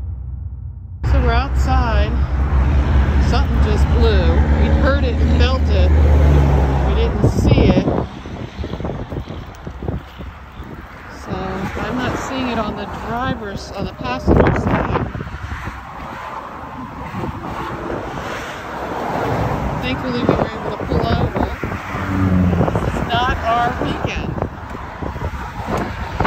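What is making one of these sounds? Highway traffic rushes past nearby.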